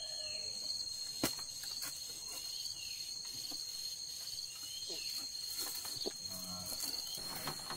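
A wooden ladder creaks and knocks under a person's steps.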